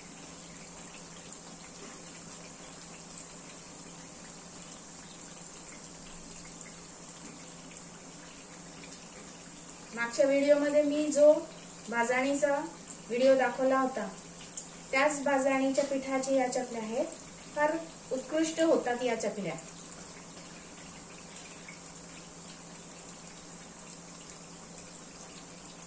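Oil sizzles gently in a frying pan.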